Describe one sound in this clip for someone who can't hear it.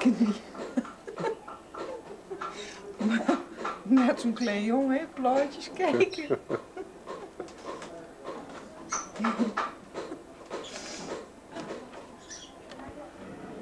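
A middle-aged woman talks cheerfully and close by.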